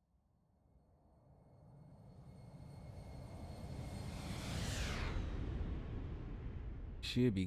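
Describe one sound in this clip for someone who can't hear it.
A jet roar swells as a plane passes by.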